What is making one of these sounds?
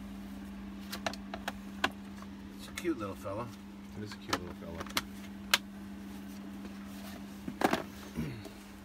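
Plastic clicks and knocks as a handheld device is handled.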